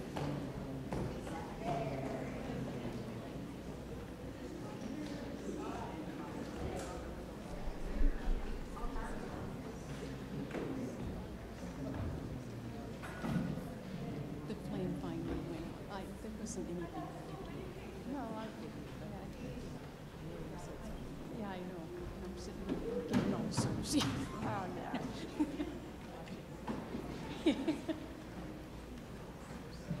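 A crowd of men and women chat and greet one another in a large echoing hall.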